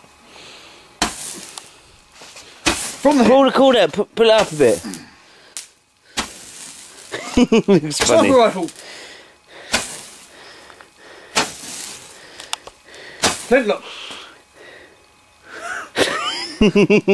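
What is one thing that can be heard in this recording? Fireworks burst with loud, sharp bangs, close by.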